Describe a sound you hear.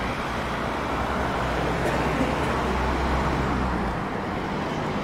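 A van's engine rumbles nearby.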